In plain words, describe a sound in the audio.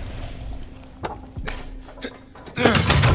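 A metal latch clicks and rattles.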